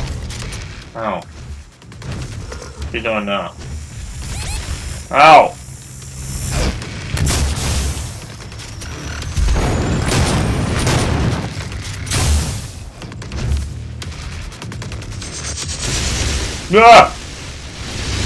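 A monster roars and snarls.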